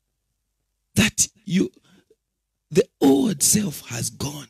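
A man speaks forcefully into a microphone, close up.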